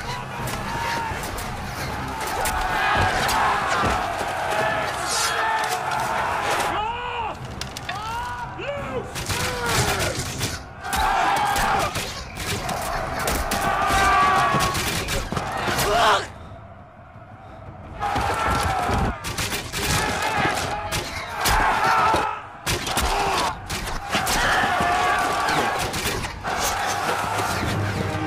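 A large crowd of men shouts and roars in battle.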